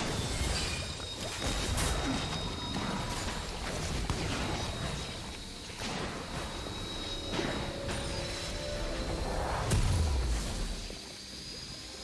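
Magic spells crackle and whoosh in a game fight.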